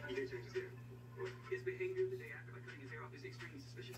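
Fingers rustle through hair.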